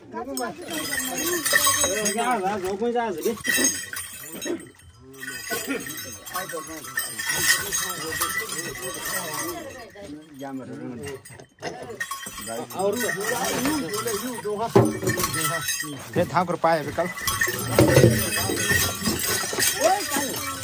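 Metal bells jingle as a man dances and shakes.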